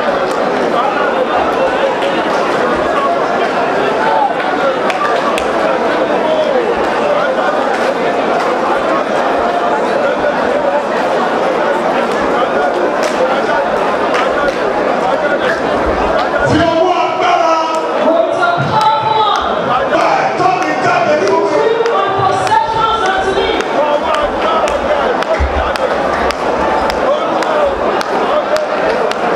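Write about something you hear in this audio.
A large crowd of men and women sings together loudly.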